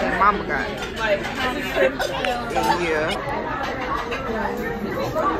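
Young women chat and laugh nearby.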